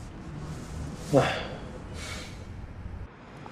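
A young man sighs heavily nearby.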